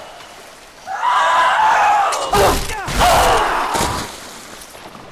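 Water splashes heavily as something thrashes in it.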